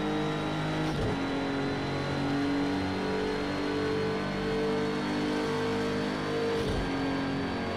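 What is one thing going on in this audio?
A gearbox clunks through quick upshifts.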